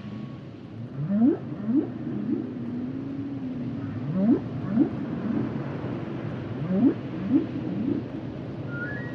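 Whales call with deep, rising moans underwater.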